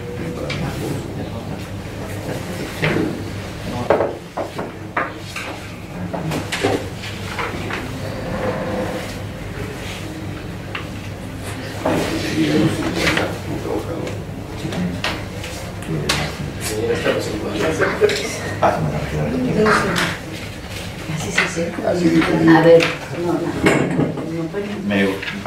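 Several adult men talk calmly, close by.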